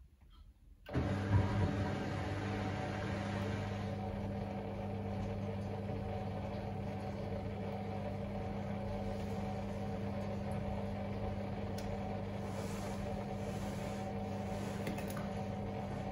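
A washing machine hums steadily as its drum spins fast.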